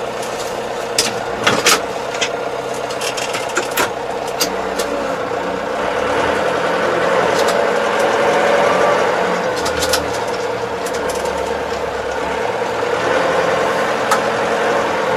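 Clicks and knocks rattle inside the cab.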